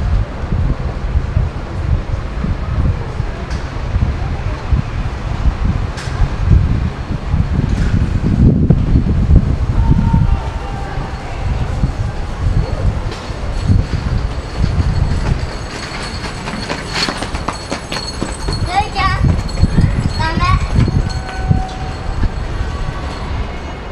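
Cars and a truck rumble past on a road below.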